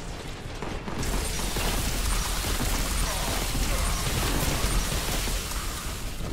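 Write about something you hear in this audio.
An energy weapon fires with a loud crackling roar.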